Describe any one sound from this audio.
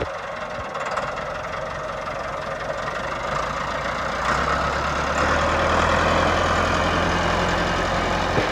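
A tractor engine rumbles steadily nearby, growing louder.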